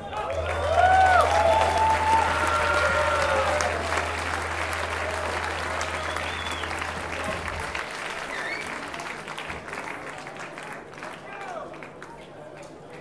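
A crowd cheers and whistles loudly in a large echoing hall, then quiets down.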